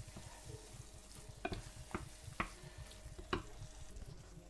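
A spoon scrapes and knocks against a frying pan.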